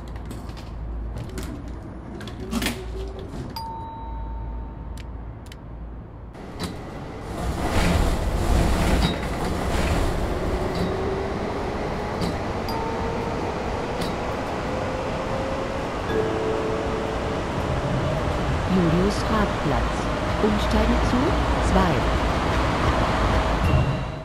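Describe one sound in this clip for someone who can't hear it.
Tram wheels rumble and clatter over the rails.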